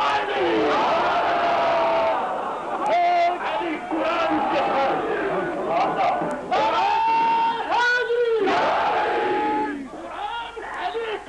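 A large crowd of men chants loudly together.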